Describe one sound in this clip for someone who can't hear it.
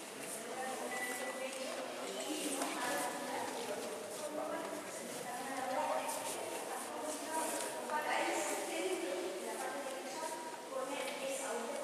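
A crowd of adults chatter and murmur nearby in a large echoing hall.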